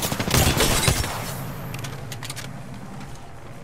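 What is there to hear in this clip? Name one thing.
A gun clatters and clicks as it is reloaded.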